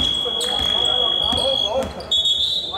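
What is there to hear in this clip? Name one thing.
A referee's whistle blows in a large echoing gym.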